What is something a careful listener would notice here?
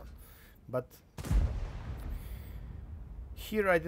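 A tank cannon fires with a deep boom.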